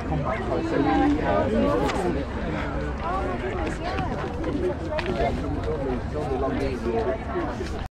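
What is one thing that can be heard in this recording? A crowd of men and women chatter close by, outdoors.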